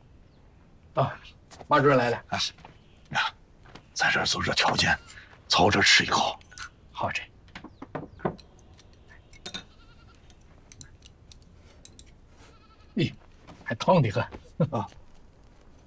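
A middle-aged man speaks warmly and chuckles.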